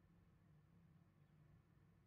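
Fingers tap on a laptop keyboard.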